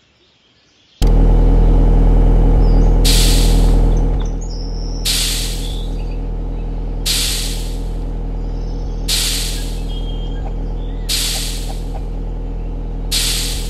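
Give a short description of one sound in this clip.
A machine hums and rumbles steadily.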